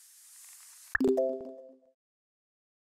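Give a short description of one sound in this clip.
A bright chime rings out briefly.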